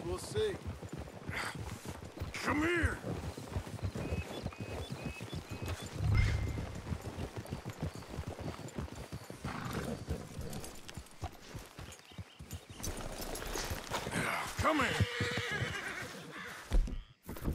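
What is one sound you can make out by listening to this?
Horses' hooves thud as they gallop over grass.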